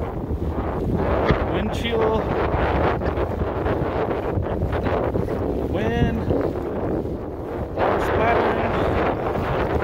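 Choppy waves slap against the hull of a small boat.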